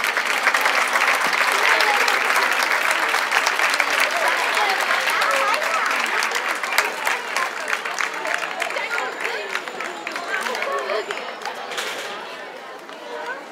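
A large crowd of men and women chatters loudly outdoors.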